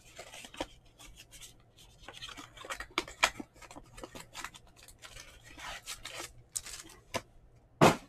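A foil card pack is torn open and crinkles.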